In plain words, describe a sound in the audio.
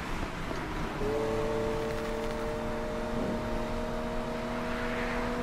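A racing car engine roars with a steady high whine.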